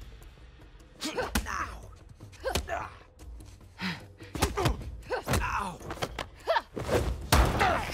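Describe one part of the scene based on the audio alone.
A woman grunts and cries out with effort.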